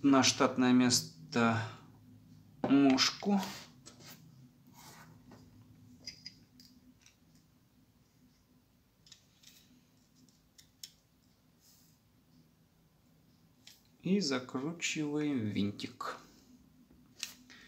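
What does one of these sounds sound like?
A small screwdriver scrapes and clicks against hard plastic parts.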